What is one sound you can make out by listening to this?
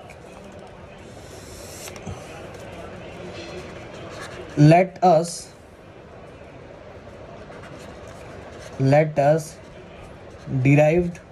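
A marker squeaks and scratches softly on paper.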